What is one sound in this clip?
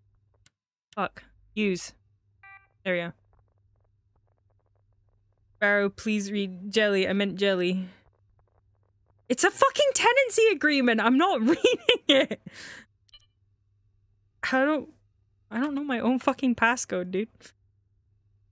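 A young woman talks into a microphone.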